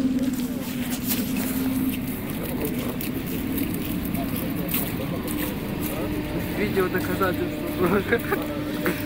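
An electric train hums steadily nearby.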